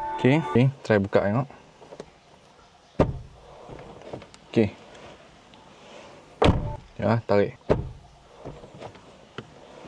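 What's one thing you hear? Car door buttons click under a finger.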